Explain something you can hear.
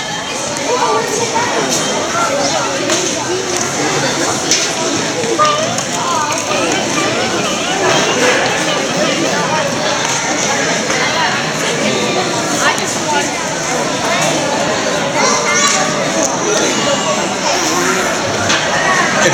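Many children talk and chatter in a large echoing hall.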